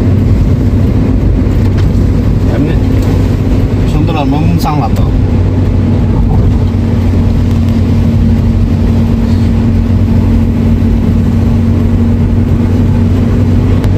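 A car engine hums steadily inside the moving car.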